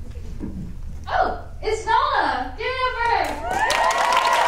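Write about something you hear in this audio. A young woman speaks with animation through a microphone in an echoing hall.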